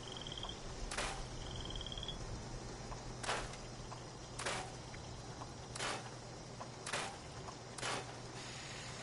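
Short soft clicks sound at intervals as menu items change.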